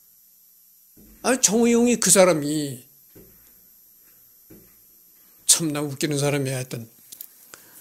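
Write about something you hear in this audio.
A middle-aged man speaks calmly and close to a microphone, in short phrases with pauses.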